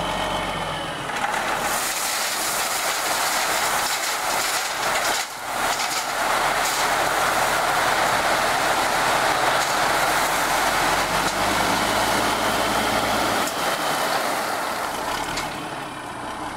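Gravel pours out of a tipping truck bed with a loud, steady rushing hiss.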